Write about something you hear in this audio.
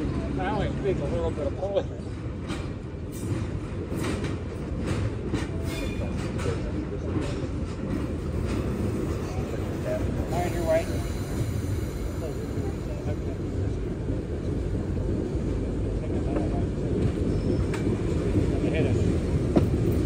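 A diesel locomotive engine rumbles steadily as it rolls slowly closer.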